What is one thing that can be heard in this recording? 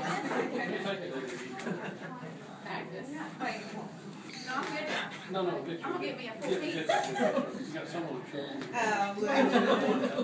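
Several men and women talk and chatter nearby in a room.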